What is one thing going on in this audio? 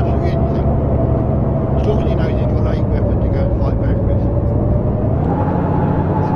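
A diesel truck engine drones from inside the cab, rising in pitch as it speeds up.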